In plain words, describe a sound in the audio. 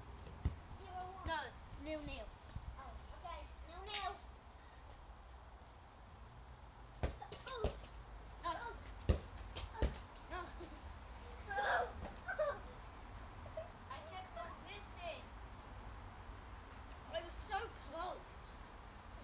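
A young girl talks and squeals excitedly nearby.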